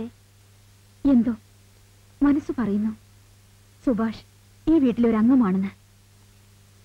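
A woman answers in a calm voice nearby.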